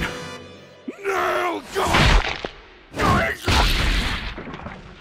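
A man roars and screams with rage.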